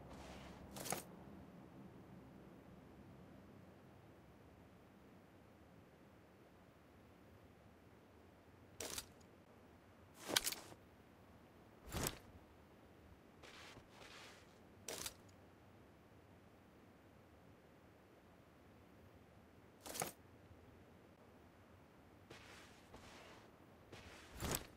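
Rifle shots crack sharply, one at a time, with pauses between them.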